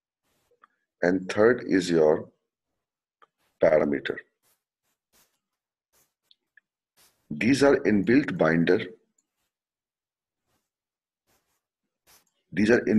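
A man speaks calmly in short bursts through a microphone, with pauses between phrases.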